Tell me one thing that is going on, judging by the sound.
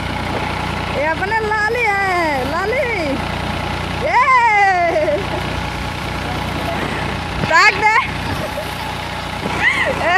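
A boy calls out loudly with a rising and falling voice.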